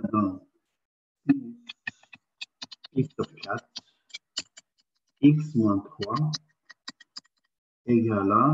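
A man speaks calmly through an online call.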